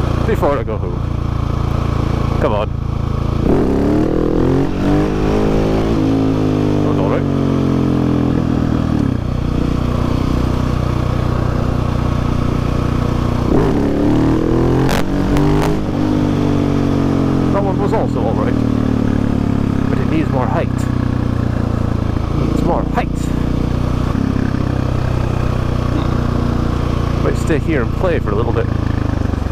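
A motorcycle engine roars loudly up close, revving up and down as gears change.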